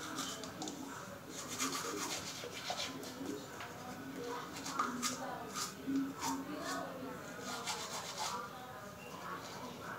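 A toothbrush scrubs rapidly against teeth.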